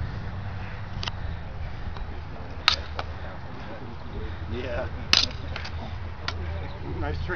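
Wooden practice swords clack sharply together.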